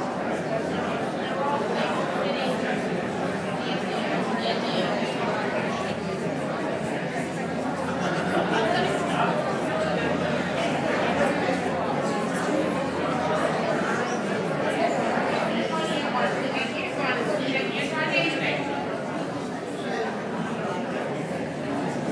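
A small crowd of men and women murmurs and chats quietly in a large hall.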